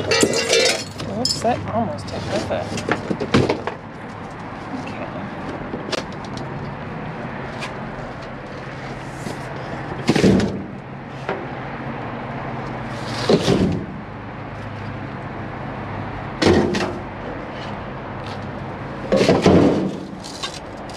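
Plastic bags rustle as they are pushed around.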